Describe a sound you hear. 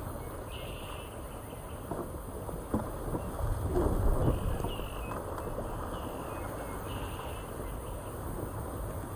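Water rushes and splashes steadily around a raft.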